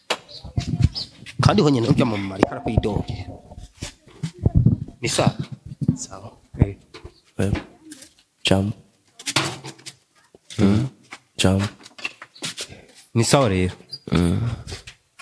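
Another young man answers into a microphone.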